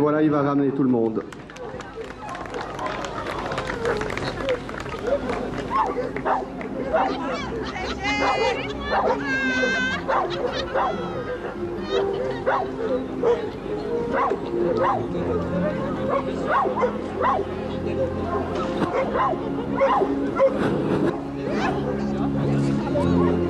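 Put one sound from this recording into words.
Several adults talk outdoors.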